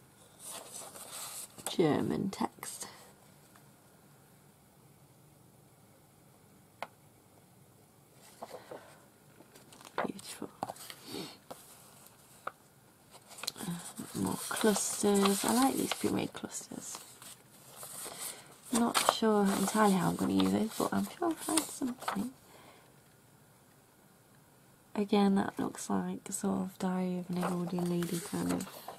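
Paper sheets rustle and slide as they are shuffled by hand.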